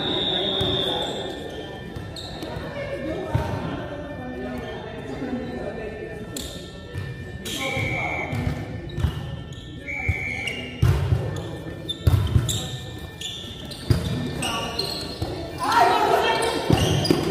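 A volleyball thumps as players hit it, echoing in a large hall.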